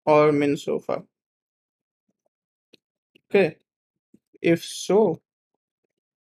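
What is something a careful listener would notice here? A young man speaks calmly and closely into a microphone, in short phrases.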